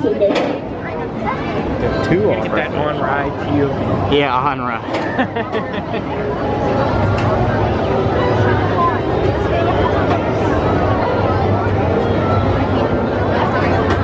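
A spinning swing ride rumbles and whirs steadily.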